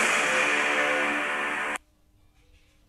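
Loud upbeat game music plays briefly, then cuts off abruptly.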